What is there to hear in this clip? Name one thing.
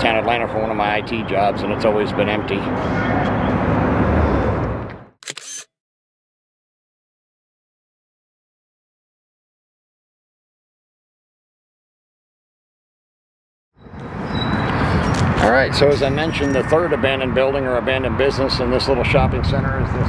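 A middle-aged man talks calmly to the listener, close by, outdoors.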